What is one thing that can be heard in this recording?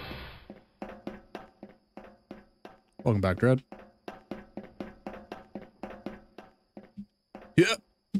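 Footsteps clank steadily on metal steps.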